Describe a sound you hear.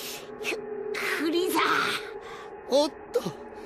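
An older man speaks sharply.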